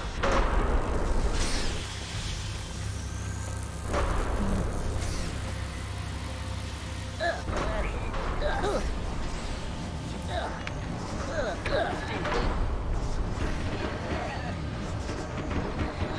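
Heavy machinery hums low and steadily.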